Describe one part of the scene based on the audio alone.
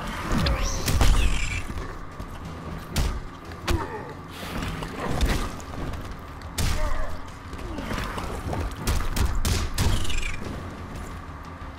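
Water crashes and splashes.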